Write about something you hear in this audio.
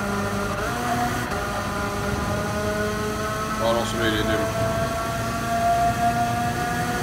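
A small kart engine buzzes at high revs and climbs in pitch as it speeds up.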